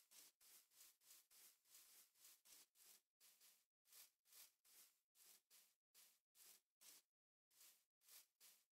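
Footsteps crunch steadily over grass.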